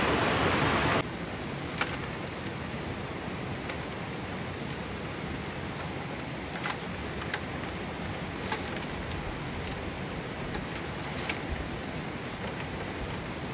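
Dry bamboo strips rustle and click as they are woven by hand.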